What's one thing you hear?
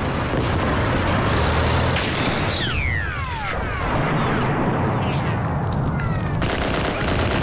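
A tank engine rumbles low nearby.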